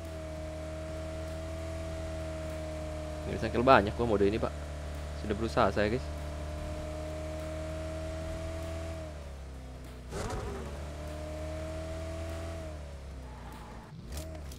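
A car engine drones steadily and then dies away.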